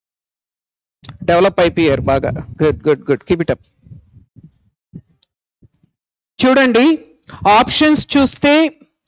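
A man lectures with animation, close to a microphone.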